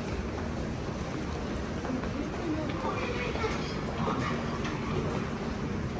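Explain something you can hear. Footsteps echo across a hard floor in a large hall.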